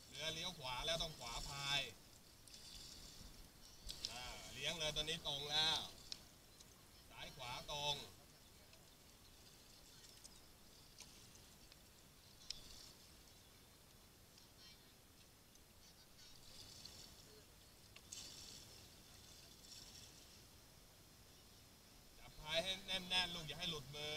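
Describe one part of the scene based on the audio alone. Water splashes and laps against a boat.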